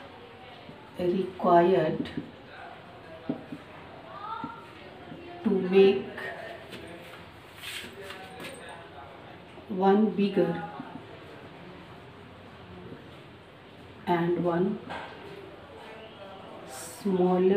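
A woman speaks calmly and slowly, as if explaining, close by.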